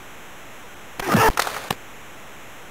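A hockey stick slaps a puck.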